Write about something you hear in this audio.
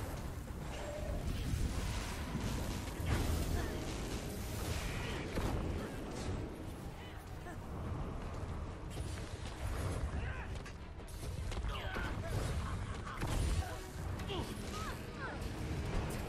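Fire spells roar and crackle in a video game battle.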